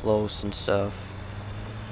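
A young man speaks briefly into a headset microphone.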